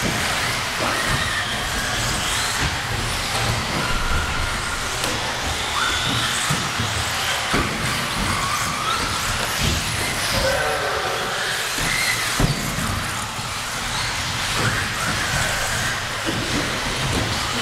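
Remote-control car tyres bump and clatter over jumps.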